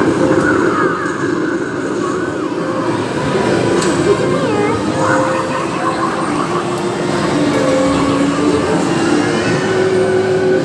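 An arcade game plays loud, busy electronic music.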